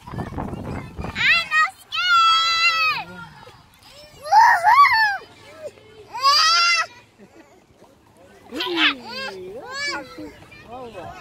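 A little girl squeals and laughs with delight close by.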